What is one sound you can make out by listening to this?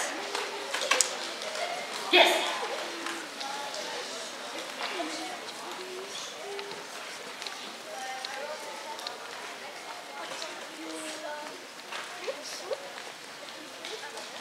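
A young audience murmurs and chatters softly.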